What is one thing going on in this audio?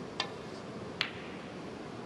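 A ball clicks against another ball.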